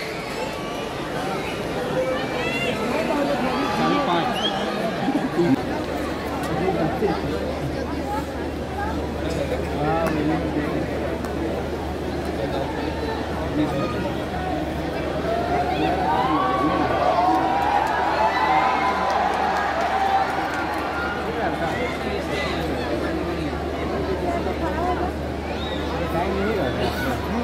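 A large crowd cheers and chatters steadily in an open stadium.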